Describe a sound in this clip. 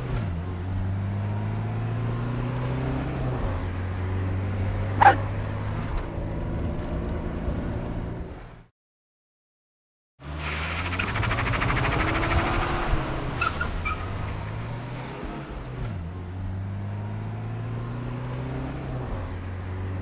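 A car engine hums steadily and revs up and down.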